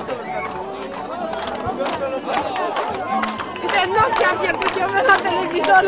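A crowd of men and women talk over one another outdoors.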